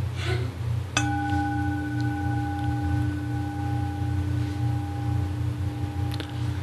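A singing bowl is struck once and rings on with a steady, fading tone.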